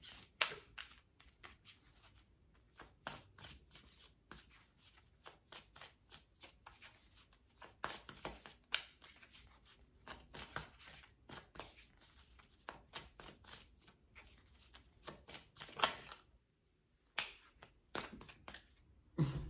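Playing cards rustle and tap softly close by.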